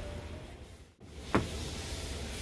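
A car door handle clicks as the door is pulled open.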